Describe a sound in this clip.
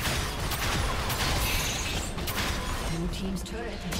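A turret collapses with a loud crash.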